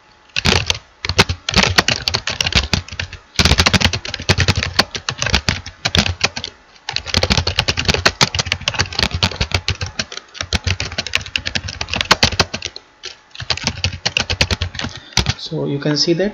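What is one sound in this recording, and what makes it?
Keys on a keyboard clatter in quick typing.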